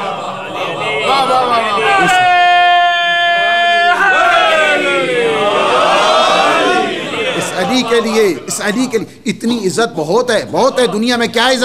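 A middle-aged man speaks passionately into a microphone.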